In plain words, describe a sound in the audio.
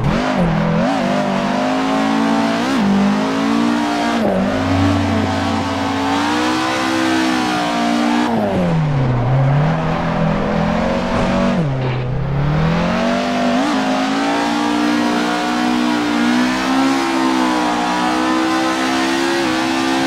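A car engine roars loudly and revs up and down with quick gear shifts.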